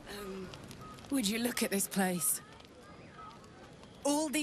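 A woman speaks warmly and cheerfully, close by.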